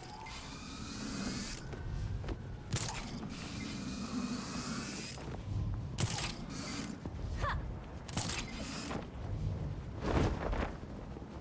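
Grappling hooks zip and clank.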